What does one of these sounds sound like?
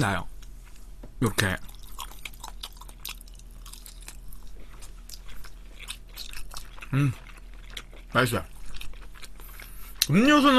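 A young man chews food noisily close to a microphone.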